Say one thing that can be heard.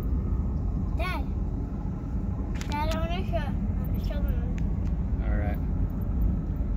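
A young boy talks and squeals excitedly close by.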